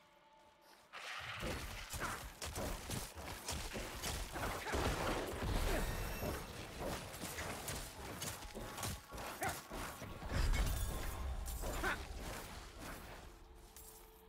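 Spells and blows crash and thud rapidly in a fierce battle.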